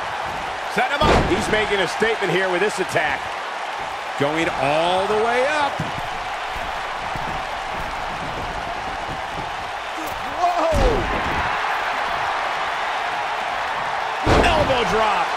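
A body slams heavily onto a wrestling mat with a deep thud.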